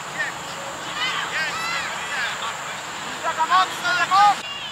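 Young girls shout and cheer outdoors.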